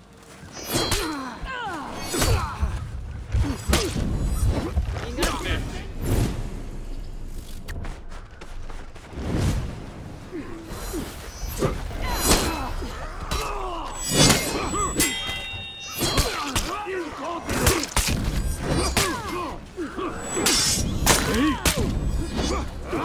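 Armoured warriors grunt and shout as they fight.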